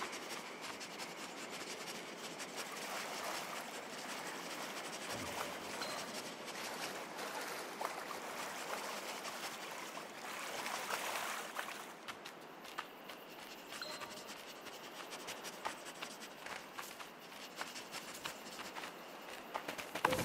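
Soft, quick paw steps patter along.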